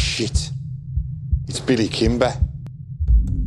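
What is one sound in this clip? A man speaks in a low, quiet voice close by.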